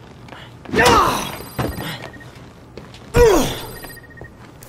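A wooden bat strikes a mannequin with heavy thuds.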